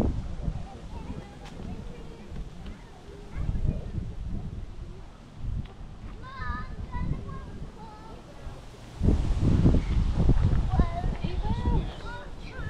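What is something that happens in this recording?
Wind gusts outdoors with a low rumble.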